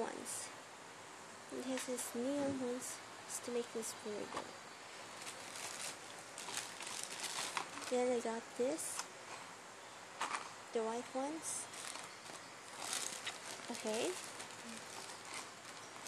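Plastic packaging crinkles and rustles in a hand.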